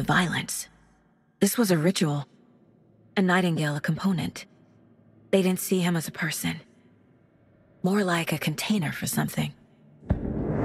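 A young woman speaks quietly and gravely, close by.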